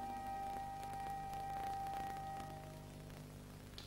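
A woman sings a long, sustained high note that fades away.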